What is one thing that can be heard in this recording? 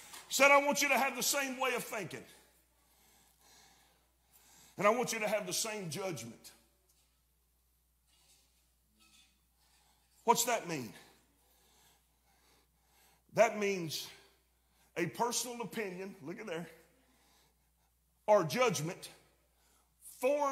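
A middle-aged man preaches through a microphone in bursts, with long pauses, in a reverberant hall.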